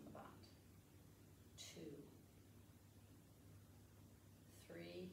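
A woman speaks calmly and clearly to the listener, close by.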